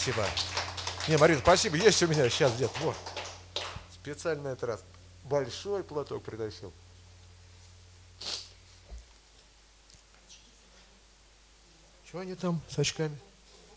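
A middle-aged man talks into a microphone with animation.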